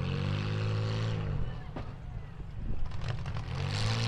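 Metal crunches as cars collide.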